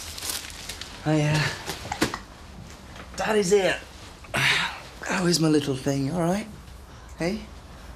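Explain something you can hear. A woman speaks softly.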